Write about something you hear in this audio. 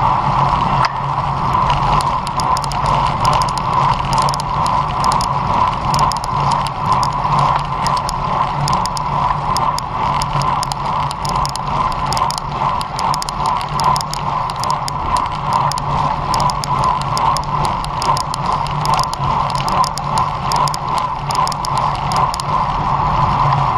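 A bicycle chain and freewheel rattle and tick.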